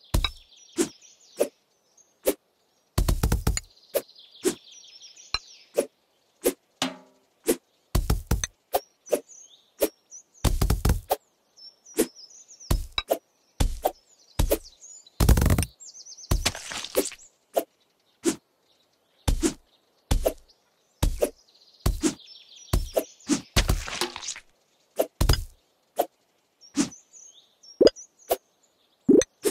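A blade slices through fruit and vegetables with quick, sharp chops.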